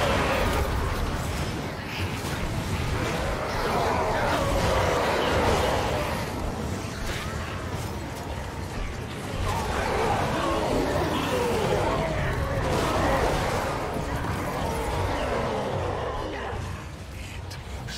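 Battle noise of clashing weapons and roaring crowds plays from a game.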